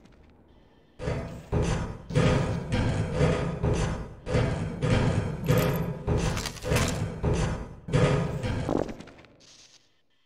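Boots clank steadily on metal ladder rungs.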